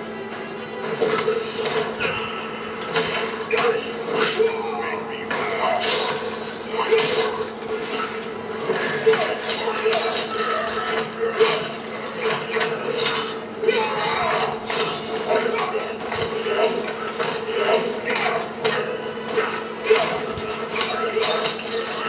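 Blows land in a fast fight with sharp, heavy thuds.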